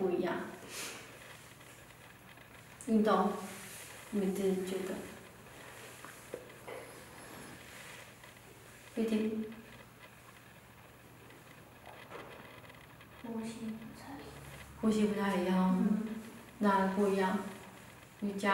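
A young woman reads aloud slowly and calmly, with long pauses, close by.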